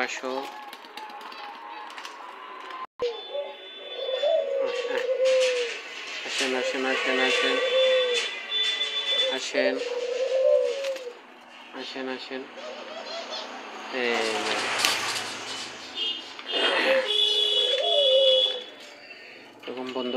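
Doves coo softly nearby.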